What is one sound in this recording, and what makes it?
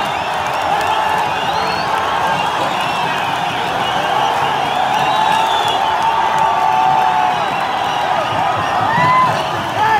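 Young men close by shout and chant excitedly.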